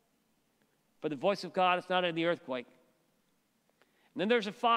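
An older man speaks with animation through a microphone in a large echoing hall.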